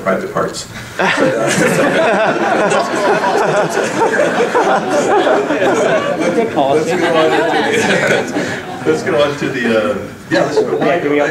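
A crowd of people laughs loudly.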